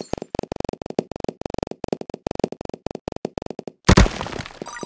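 Small balls click and pop rapidly as they bounce and break apart.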